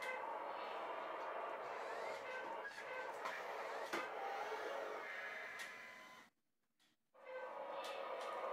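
The electric motor and gears of a toy remote-control wheel loader whine as it drives across a hard floor.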